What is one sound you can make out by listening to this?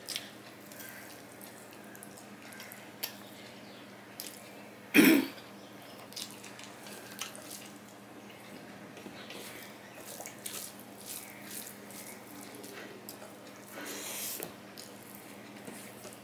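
A man chews food noisily, close by.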